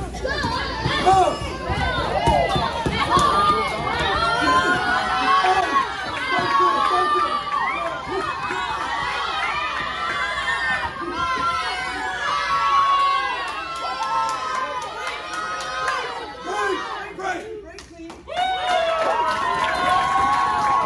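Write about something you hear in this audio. A crowd of men and women shout encouragement and cheer excitedly in an echoing hall.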